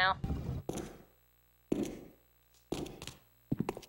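Footsteps thud along a corridor.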